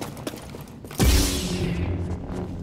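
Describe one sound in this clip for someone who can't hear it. A lightsaber ignites with a sharp burst.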